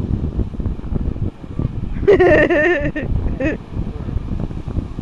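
Waves break and wash onto the shore nearby.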